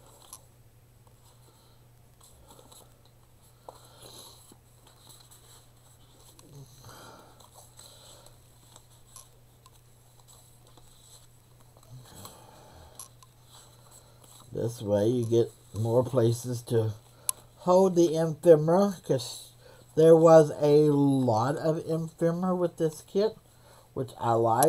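Paper rustles and slides softly.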